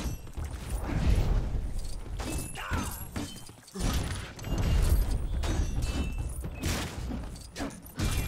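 Small coins jingle as they are picked up.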